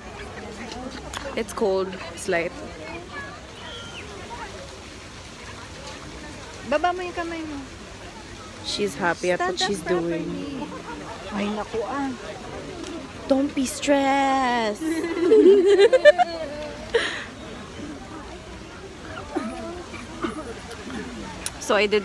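A young woman talks close by, casually.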